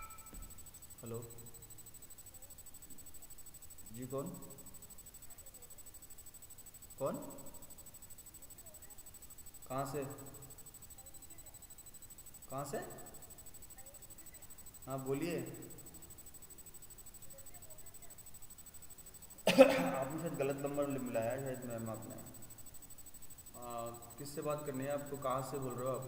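A man speaks on a phone in short, calm bursts, close by.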